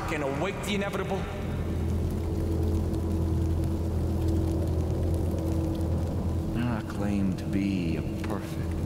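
A man speaks calmly and slowly in a low voice, close by.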